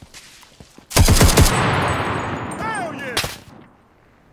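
A submachine gun fires a rapid burst close by.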